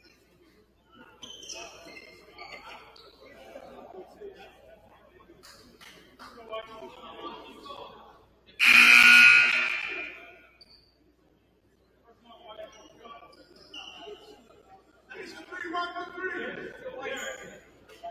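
Young players talk and shout together in an echoing gym.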